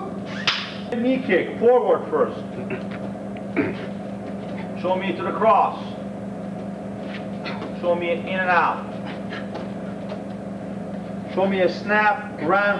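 A man shouts sharply.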